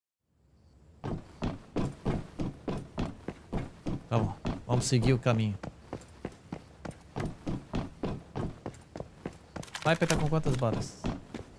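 Footsteps clang quickly and evenly on metal floors.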